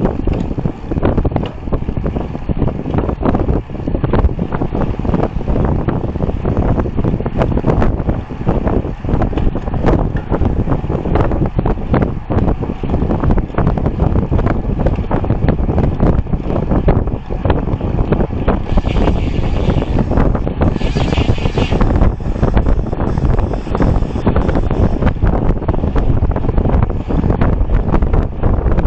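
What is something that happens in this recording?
Wind buffets loudly against a moving bicycle.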